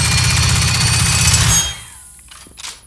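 A gun fires a loud, rapid burst of shots.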